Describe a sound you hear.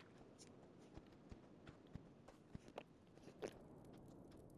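A horse's hooves clop softly at a steady pace.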